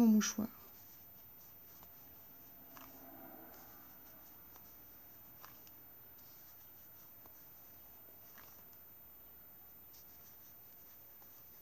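A crochet hook clicks and taps softly against yarn.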